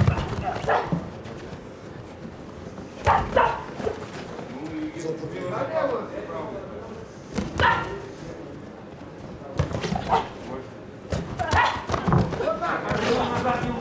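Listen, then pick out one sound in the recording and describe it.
Boxing gloves thud sharply against a body in quick blows.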